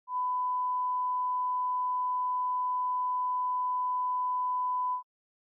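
A steady, high test tone sounds without a break.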